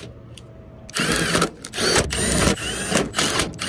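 A power drill whirs loudly in short bursts.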